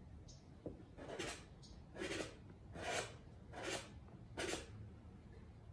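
Sandpaper rasps against wood in short strokes.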